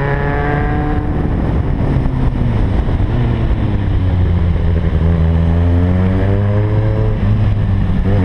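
A motorcycle engine hums and changes pitch as the rider shifts and accelerates.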